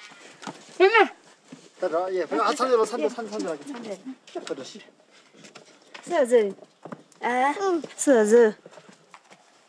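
A young child laughs and chatters nearby.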